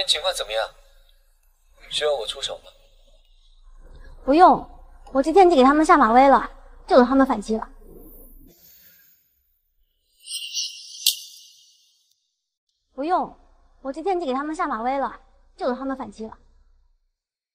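A young woman speaks on a phone with animation, close by.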